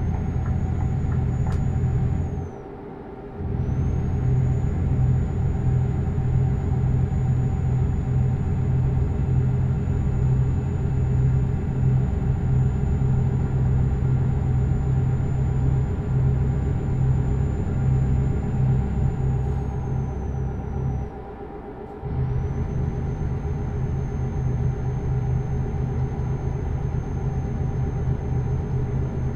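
A heavy truck engine drones steadily, briefly dropping away during gear changes.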